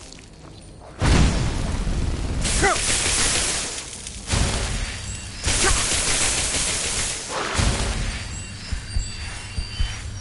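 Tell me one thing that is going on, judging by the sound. A fire spell roars and crackles in bursts.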